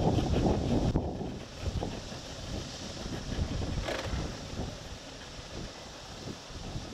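Water laps gently against a harbour wall.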